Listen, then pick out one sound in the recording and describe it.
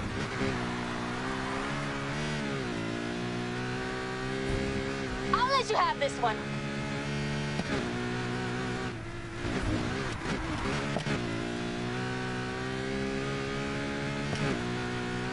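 A sports car engine roars at high revs, shifting gears as it speeds along.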